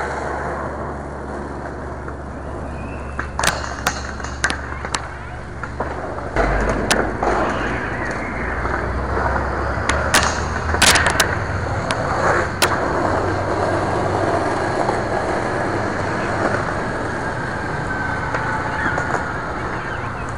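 Skateboard wheels roll over pavement.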